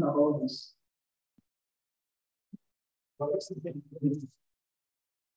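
An elderly man speaks into a microphone over an online call.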